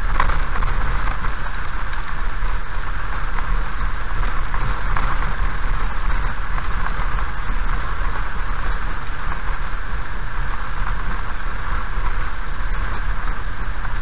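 Tyres hiss on the wet road surface.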